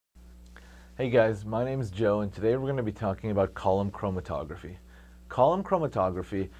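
A young man speaks calmly to the listener, close to the microphone.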